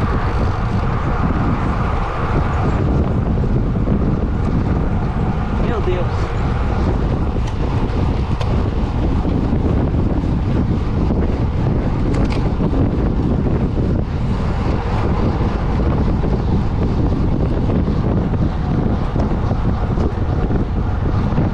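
Wind rushes loudly past while cycling outdoors.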